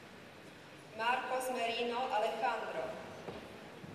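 A woman speaks briefly and clearly in an echoing hall.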